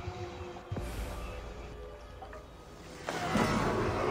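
Water laps and splashes gently against a wooden boat.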